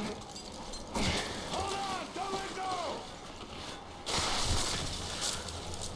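Ice axes strike hard ice with sharp thuds.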